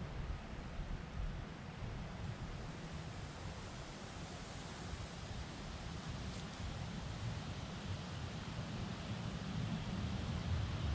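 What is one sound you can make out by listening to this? Wind blows and rustles through trees outdoors.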